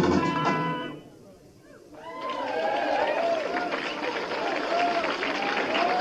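Electric guitars play loudly.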